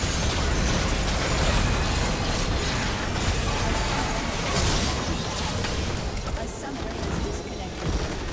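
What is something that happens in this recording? Magic spells crackle and blast in a fast battle.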